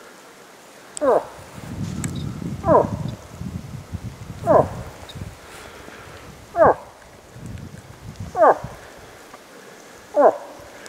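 A man gives short, loud, falling wailing calls at even intervals.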